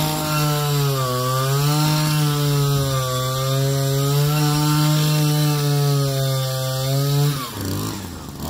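An auger engine roars loudly close by.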